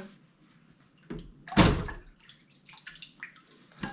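Water splashes in a sink.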